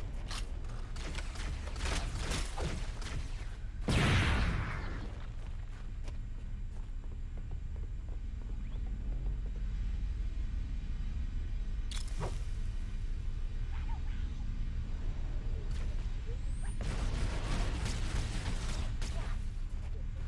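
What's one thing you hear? Gunshots from a game fire in quick bursts.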